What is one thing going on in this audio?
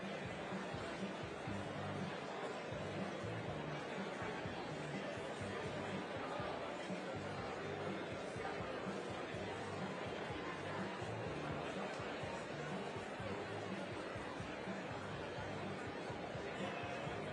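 A large crowd chatters in an echoing hall.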